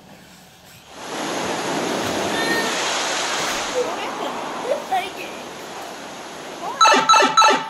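Water rushes and roars down a waterfall.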